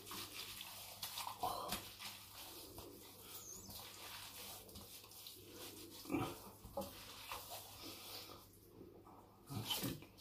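A towel rubs against a man's face.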